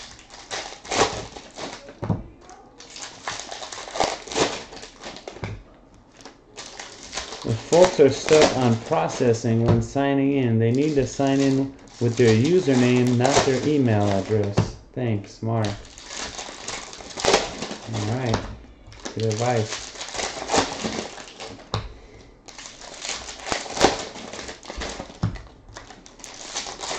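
Foil wrappers crinkle and rustle as hands tear open packs.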